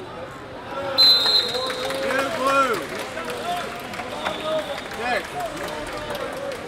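Spectators cheer and shout loudly.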